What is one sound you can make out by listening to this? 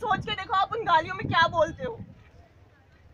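A young woman speaks loudly and with passion into a microphone, heard through loudspeakers outdoors.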